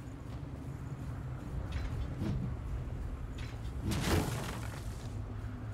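Footsteps run across rubble-strewn stone.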